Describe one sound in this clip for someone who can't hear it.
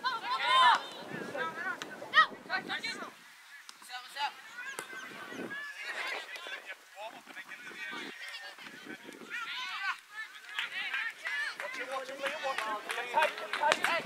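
Young players shout and call out to each other outdoors on an open field.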